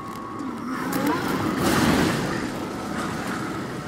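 A brick wall breaks apart with a loud crumbling crash.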